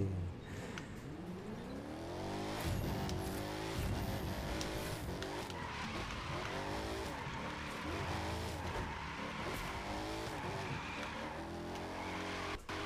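A car engine revs up and down loudly through gear changes.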